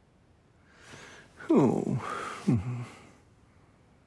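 A man yawns loudly.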